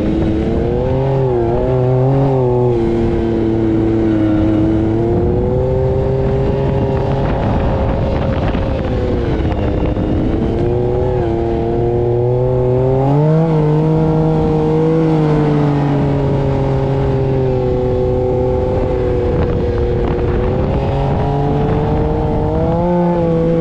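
An engine roars loudly, revving up and down.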